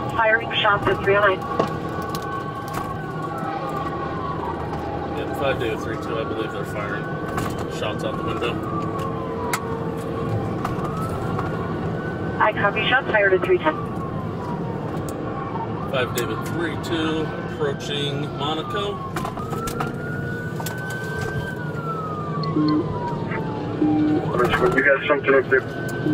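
A car engine hums steadily with road noise as the car drives fast.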